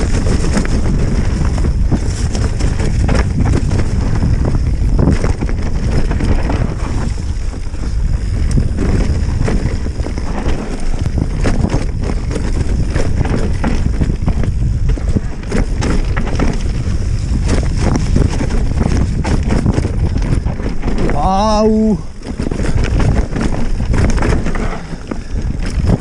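Wind rushes loudly past a fast-moving rider outdoors.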